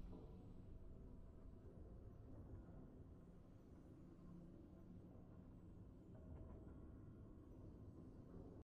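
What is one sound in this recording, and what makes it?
Triumphant game music plays.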